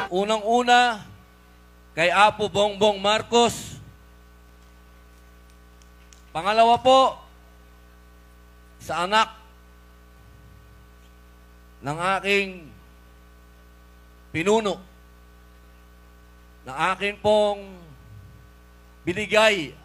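A young man shouts short phrases into a microphone over loudspeakers, with pauses between them.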